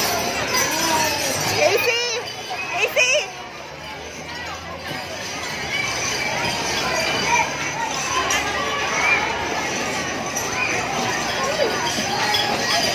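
Young children chatter and shout excitedly nearby, outdoors.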